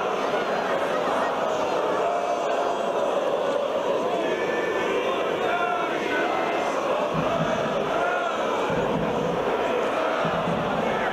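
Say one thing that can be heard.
A group of young men chant together loudly outdoors.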